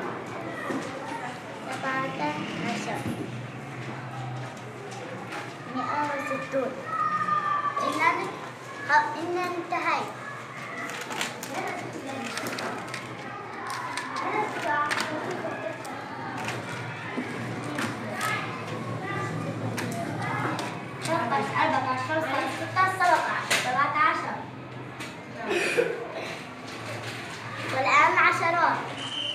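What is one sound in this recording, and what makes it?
Children chatter in the background of a busy room.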